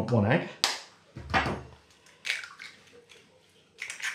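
An egg cracks against a bowl's rim.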